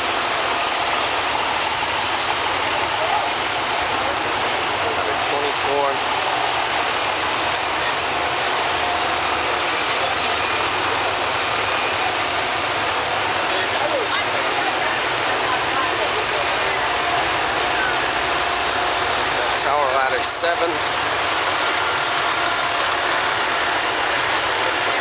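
Traffic hums steadily on a busy city street outdoors.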